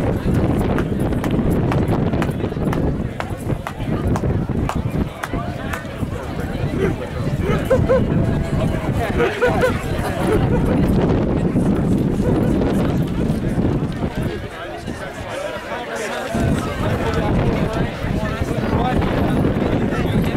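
A crowd of men and women talks and murmurs outdoors nearby.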